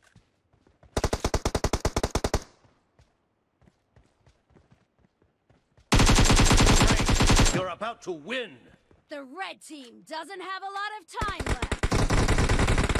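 Automatic rifle fire rattles in rapid bursts.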